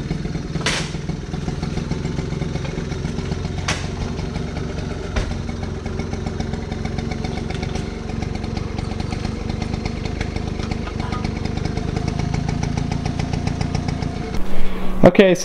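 A small motorbike engine idles with a steady, rapid putter.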